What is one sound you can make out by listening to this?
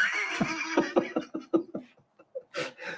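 An older man laughs heartily up close.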